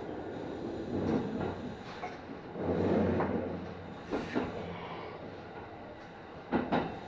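Train wheels clack over rail joints and points.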